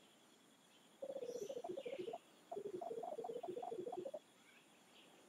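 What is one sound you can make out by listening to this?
A cartoon character babbles in quick, chirpy musical blips.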